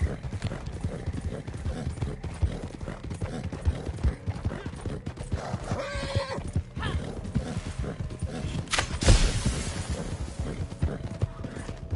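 Horse hooves thud steadily on a dirt path at a gallop.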